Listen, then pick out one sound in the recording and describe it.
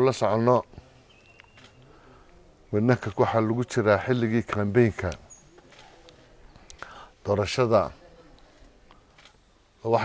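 An elderly man speaks slowly and firmly into a close microphone, with long pauses.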